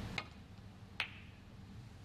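Snooker balls clack together as the cue ball hits the pack.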